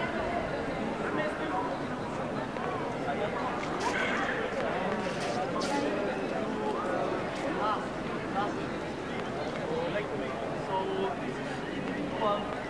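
A crowd of people chatters across an open outdoor square.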